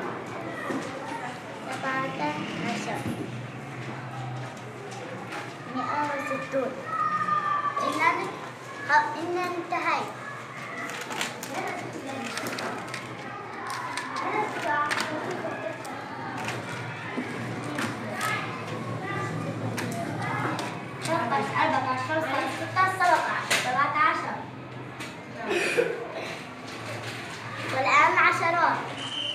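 A young girl speaks up close, counting aloud with animation.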